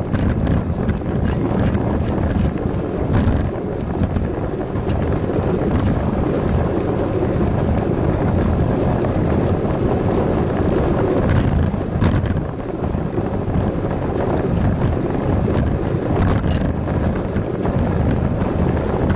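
Wind rumbles loudly across a moving bicycle.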